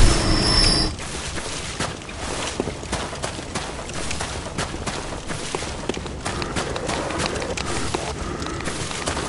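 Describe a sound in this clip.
Quick footsteps run over dirt and grass.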